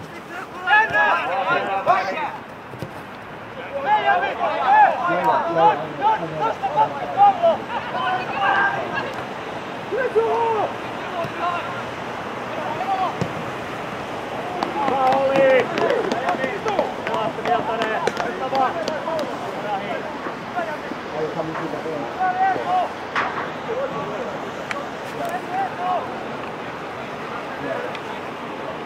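Young men shout to each other outdoors, at a distance.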